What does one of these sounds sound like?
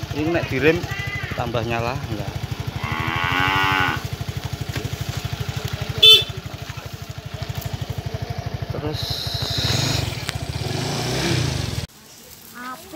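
A scooter engine idles with a steady rapid putter.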